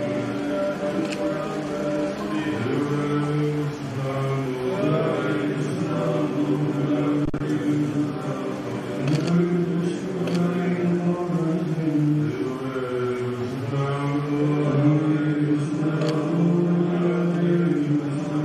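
A man chants a prayer in a slow, sustained voice through a microphone.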